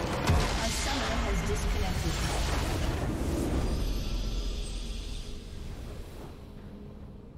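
A huge magical explosion booms and rumbles, then slowly fades away.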